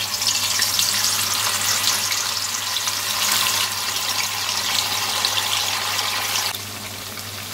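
Pieces of tofu drop into hot oil with a loud sizzle.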